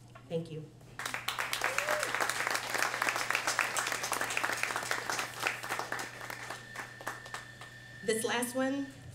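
An audience applauds in a small room.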